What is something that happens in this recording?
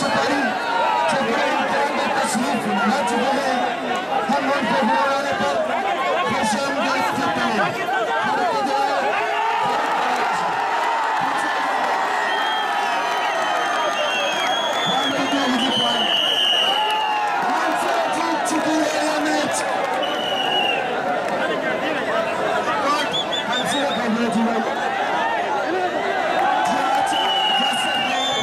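A large outdoor crowd cheers and shouts.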